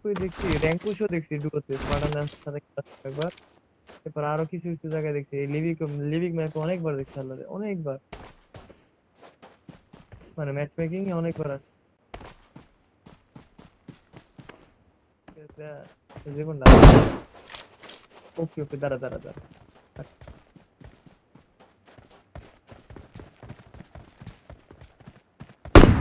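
Quick footsteps crunch on dry ground.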